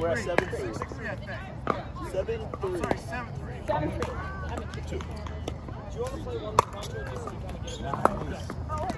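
Pickleball paddles pop sharply against a plastic ball.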